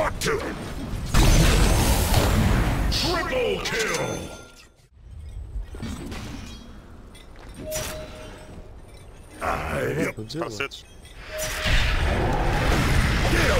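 Spell effects whoosh and shimmer.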